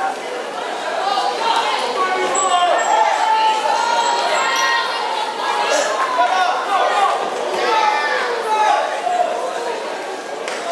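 A crowd in a large echoing hall shouts and cheers.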